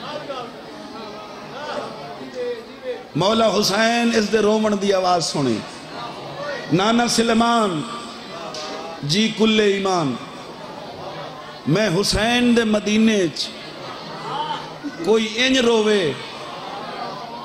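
A man chants loudly and passionately into a microphone over a loudspeaker, in long sung phrases with pauses.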